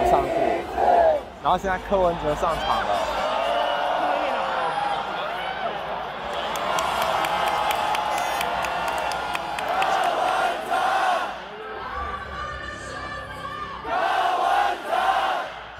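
A young man shouts along with the crowd close by.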